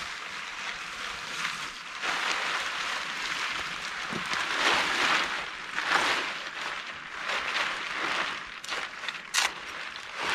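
Dry branches rustle and crackle as a man handles them.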